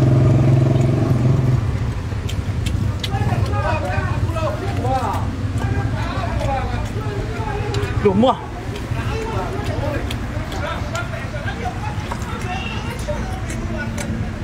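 A young woman chews and slurps noisily close by.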